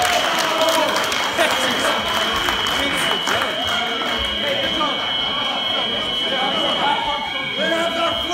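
A crowd of young people chatter and call out loudly in an echoing hall.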